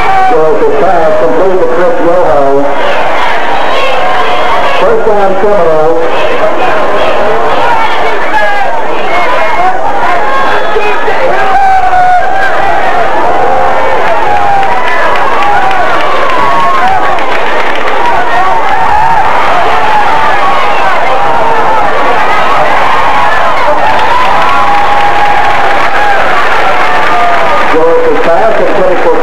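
A crowd of spectators talks and cheers nearby, outdoors.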